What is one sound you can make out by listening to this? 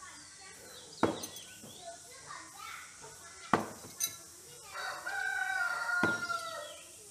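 A thrown object strikes a wooden board with a sharp knock.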